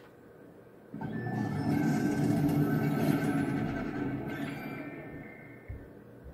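A loud rumbling whoosh plays through a speaker and slowly fades.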